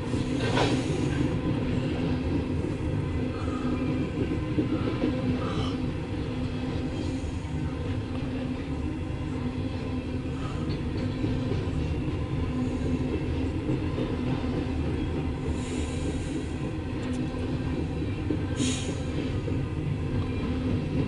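A freight train rumbles past close by, wheels clattering on the rails.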